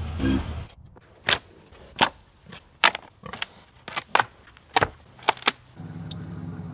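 Wooden boards knock and clatter.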